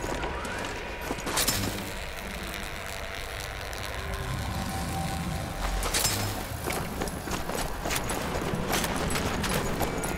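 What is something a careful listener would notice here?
Footsteps thud on wet ground.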